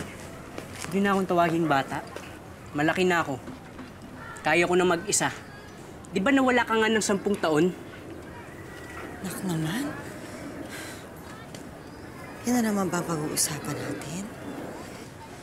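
A woman speaks in a distressed, pleading voice nearby.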